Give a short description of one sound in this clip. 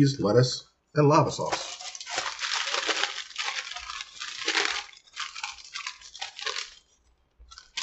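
Paper packaging crinkles and rustles.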